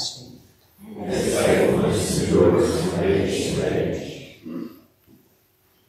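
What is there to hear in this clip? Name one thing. A congregation recites together in unison.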